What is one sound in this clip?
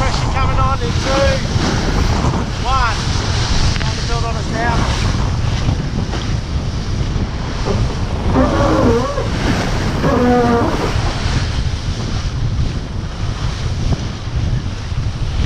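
Water rushes and splashes along a boat's hull.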